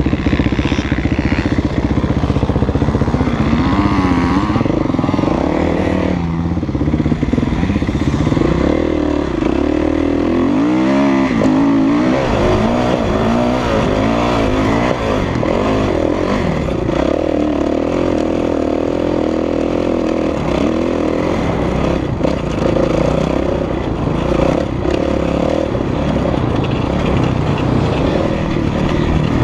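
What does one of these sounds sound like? A four-stroke 450 dirt bike revs hard up and down through the gears.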